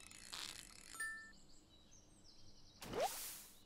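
A short chime rings as a fish is caught.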